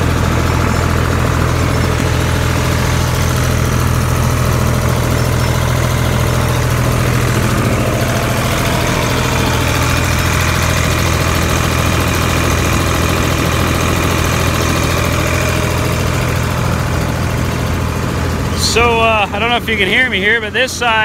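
Farm machinery runs with a steady loud droning hum.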